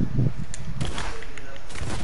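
Wooden panels clatter as they are built.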